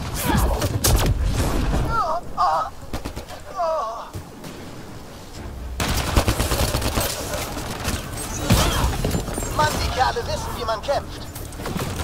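Gunfire and energy blasts crackle and boom in bursts.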